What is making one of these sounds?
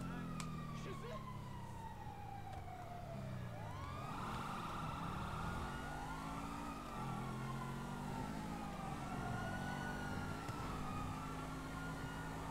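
A sports car engine hums and revs as the car drives along a street, shifting gears.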